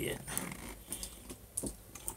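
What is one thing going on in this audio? A man gulps from a plastic bottle.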